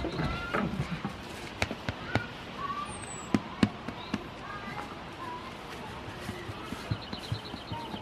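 Straw rustles under a goat's hooves.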